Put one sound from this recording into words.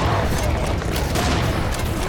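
An explosion bursts with a loud boom.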